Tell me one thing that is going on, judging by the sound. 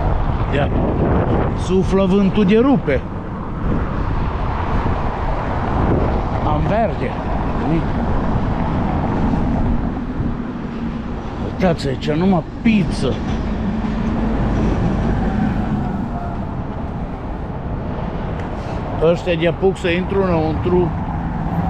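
Tyres rumble over paving stones.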